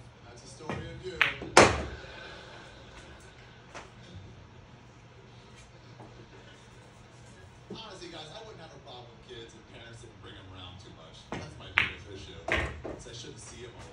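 A cue stick strikes a pool ball with a sharp click.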